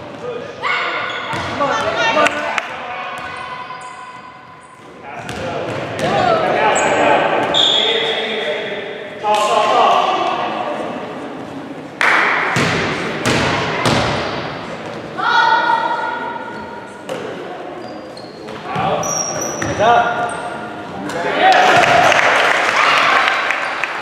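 Sneakers squeak sharply on a gym floor.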